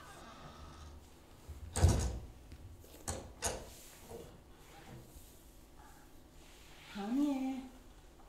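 A performer's body and hands thump softly on a wooden stage floor.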